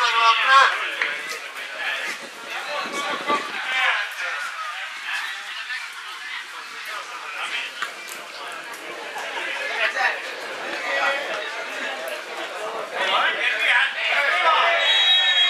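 Football players shout to each other across an open pitch outdoors.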